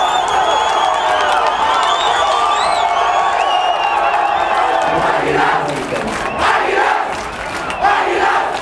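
A large crowd of football fans chants and cheers in an open stadium.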